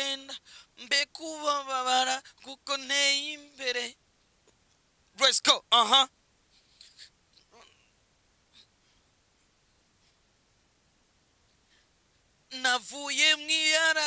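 A young man speaks close into a microphone, with animation.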